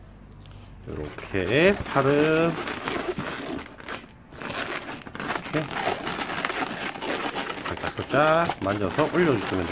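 Rubber balloons squeak loudly as they are twisted.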